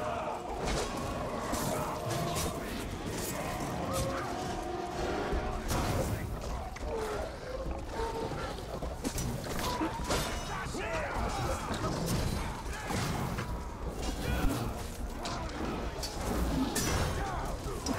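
Blades clash and strike in a fierce fight.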